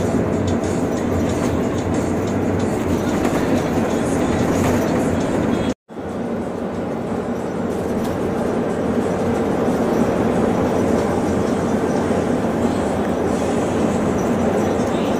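A vehicle's engine drones steadily from inside the cab.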